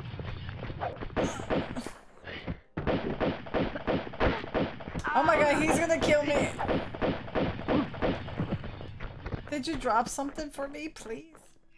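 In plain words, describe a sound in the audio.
Pistols fire in rapid bursts.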